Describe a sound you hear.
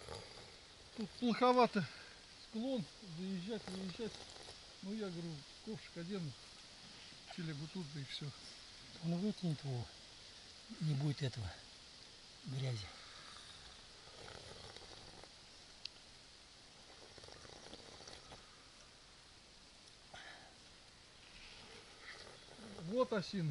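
A middle-aged man talks calmly outdoors, close by.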